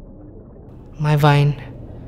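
A young man calls out briefly nearby.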